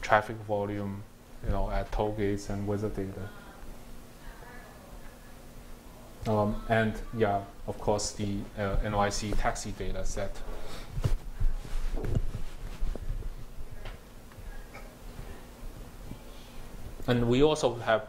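A young man speaks calmly through a microphone in a large room, pausing now and then.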